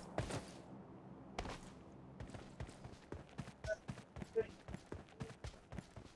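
Footsteps crunch on dirt outdoors.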